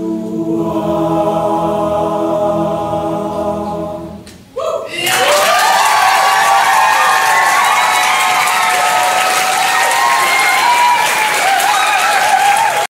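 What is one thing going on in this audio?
A choir of young men sings in harmony in a reverberant hall.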